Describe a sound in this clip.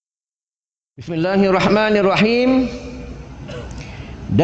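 A middle-aged man speaks calmly into a microphone nearby.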